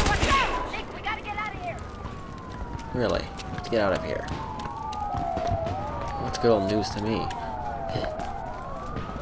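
Sirens wail with rising and falling pitch.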